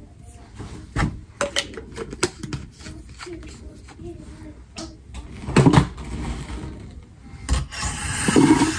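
A plastic bottle clicks and rattles in a woman's hands.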